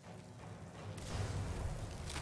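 A magical spell crackles and whooshes loudly.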